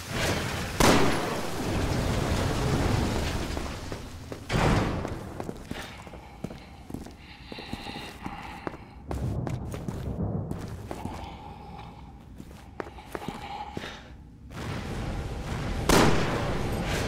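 A pistol fires sharp shots that echo in a large stone hall.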